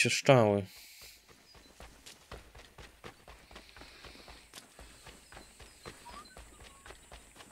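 Footsteps thud quickly on a dirt path.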